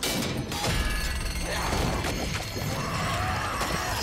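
A creature shrieks in pain.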